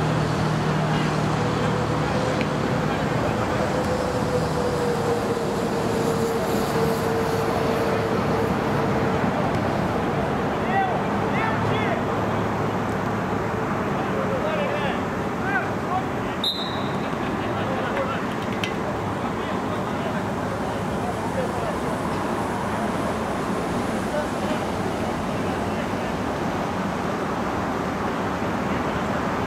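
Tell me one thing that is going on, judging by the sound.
Spectators chatter and call out around an outdoor pitch.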